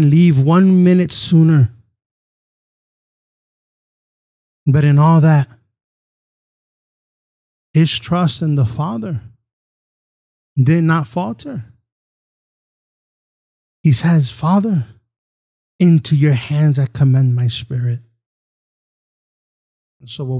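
A man sings closely into a microphone in short phrases with long pauses between.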